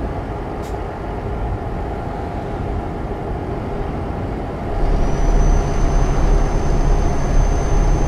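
A truck engine rumbles steadily while driving on a road.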